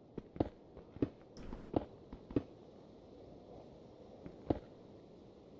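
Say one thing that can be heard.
Blocks of stone are struck and broken with quick, sharp knocks.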